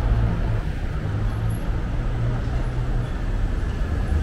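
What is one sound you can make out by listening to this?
A city bus engine rumbles.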